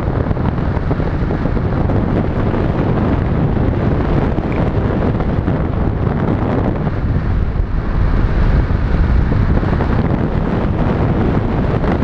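Strong wind rushes and buffets loudly over a microphone.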